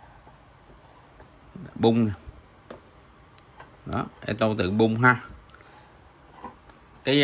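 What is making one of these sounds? A bench vise handle turns with faint metal clicks.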